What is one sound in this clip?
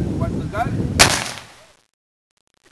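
A cannon fires with a single loud boom.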